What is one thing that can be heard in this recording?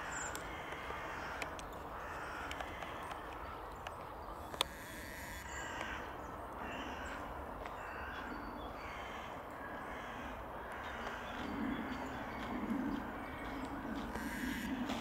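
A small bird taps its beak on tree bark.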